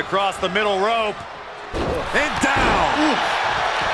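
A body slams down hard onto a wrestling ring mat.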